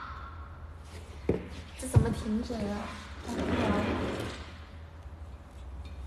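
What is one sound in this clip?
An office chair creaks and rolls on a wooden floor.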